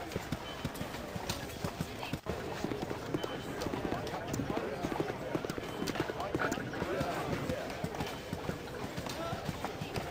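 Footsteps crunch along a gravel path.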